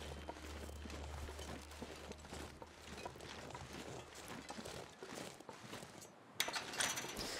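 Footsteps crunch softly through snow.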